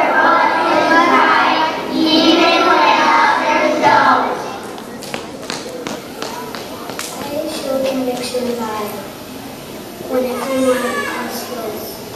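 A young girl speaks through a loudspeaker in a room.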